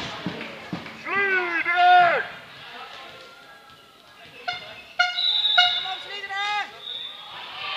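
Athletic shoes squeak on a hard court floor.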